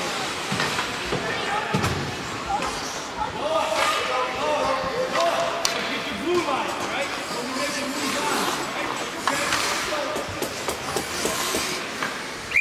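Spectators chatter and call out in an echoing indoor rink.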